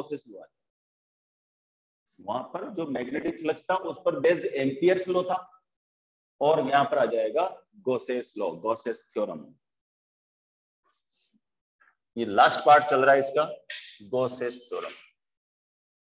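A middle-aged man lectures calmly.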